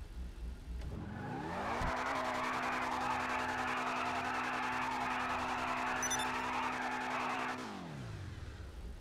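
A car engine revs up high and holds steady.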